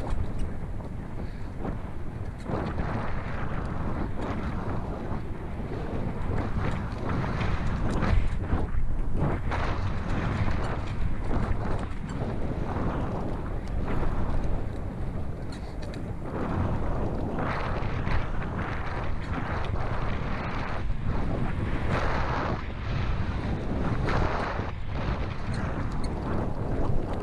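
Mountain bike tyres crunch and rattle over a dirt and gravel trail.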